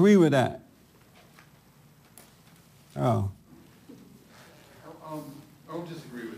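A man speaks with emphasis into a microphone, pausing between phrases.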